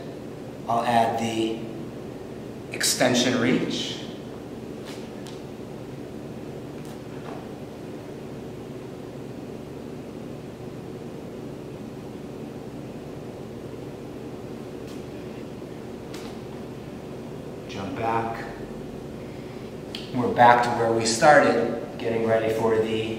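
A man speaks calmly and clearly into a microphone nearby.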